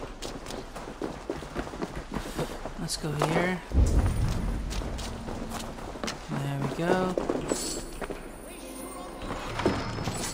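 Footsteps thud softly on the ground.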